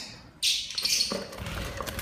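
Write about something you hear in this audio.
A metal latch slides and clicks on a wooden cage door.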